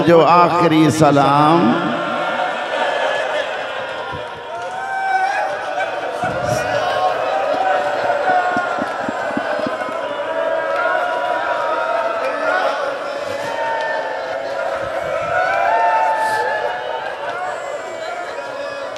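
A man recites in a chanting voice through a loudspeaker.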